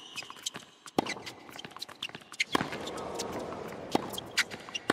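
A tennis ball is struck hard by a racket.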